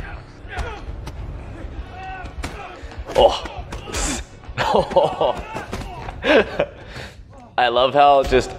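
Men grunt and shout during a fight.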